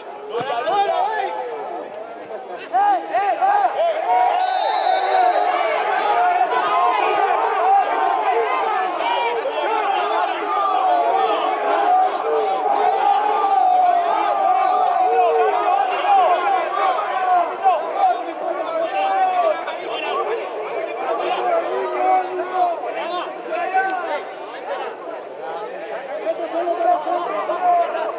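Football players shout to each other across an outdoor pitch in the distance.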